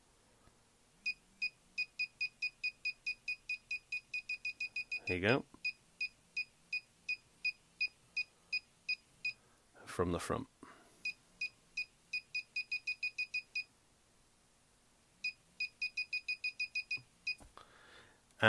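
A handheld metal detector beeps in quick, even pulses.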